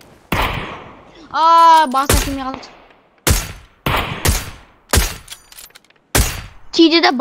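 Rifle shots ring out one after another.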